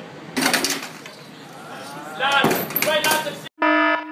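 A metal chair clatters as it falls over.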